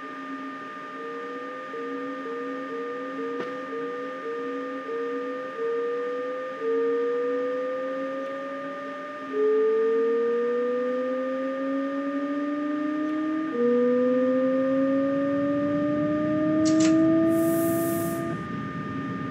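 An electric train's motors whine, rising in pitch again and again as the train speeds up.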